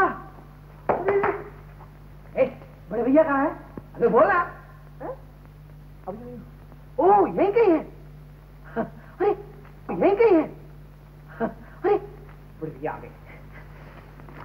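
A man speaks with animation over a low, steady hum.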